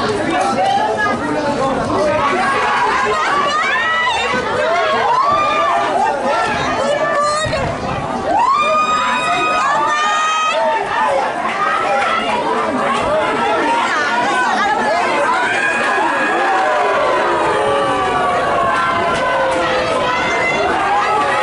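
Spectators cheer and shout loudly outdoors.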